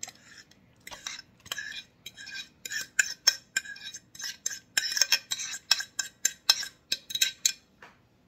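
A spatula scrapes and taps batter off a plate into a metal bowl.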